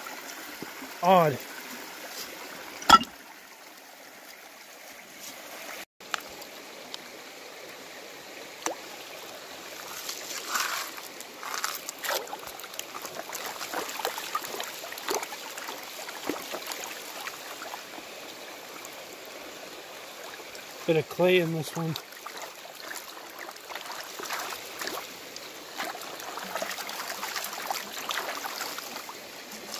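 A shallow stream babbles steadily over stones.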